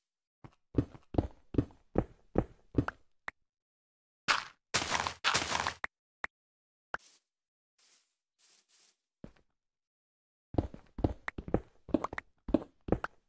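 A pickaxe chips rapidly at stone blocks with sharp crunching knocks.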